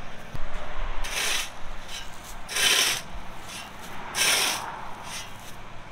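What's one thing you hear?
A shovel scrapes across gravel.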